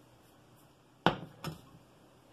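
A glass dish clinks down onto a glass cooktop.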